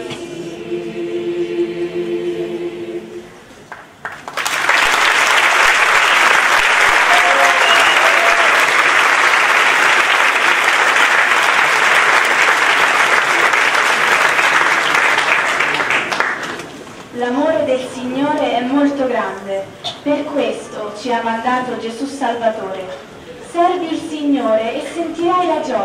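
A large choir sings in an echoing hall.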